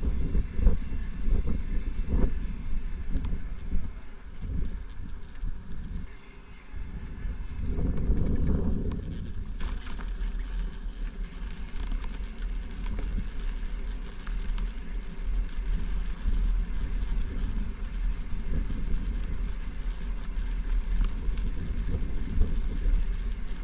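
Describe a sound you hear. Wind buffets loudly outdoors, rumbling steadily.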